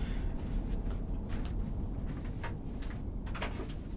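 A submarine hums with a deep, low rumble underwater.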